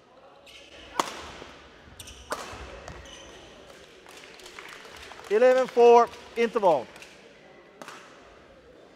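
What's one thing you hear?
A racket strikes a shuttlecock with sharp smacks.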